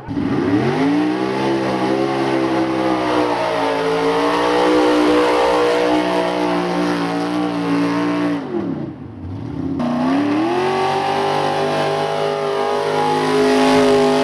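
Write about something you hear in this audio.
A truck engine roars loudly at high revs, dropping and rising again.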